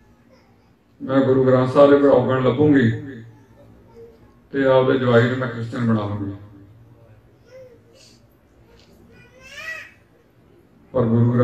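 A man chants loudly in a pitched voice, in short phrases with pauses.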